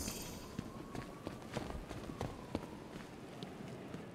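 Footsteps thud down metal stairs.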